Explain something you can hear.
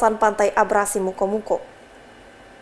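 A young woman speaks calmly and clearly into a microphone, reading out.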